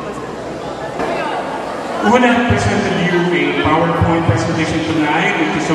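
A man speaks steadily into a microphone over a loudspeaker.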